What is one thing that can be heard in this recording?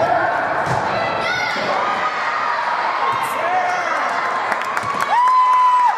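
A volleyball is struck by hand.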